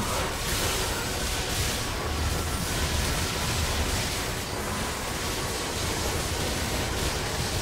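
Low booming impacts rumble.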